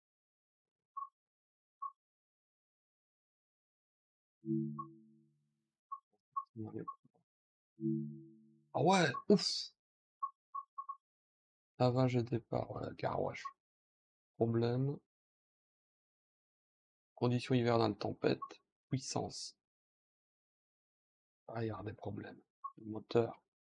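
Short soft electronic beeps sound as menu options change.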